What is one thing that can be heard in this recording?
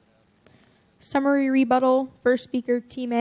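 A woman speaks loudly through a microphone.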